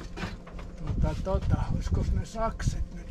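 A man talks briefly nearby.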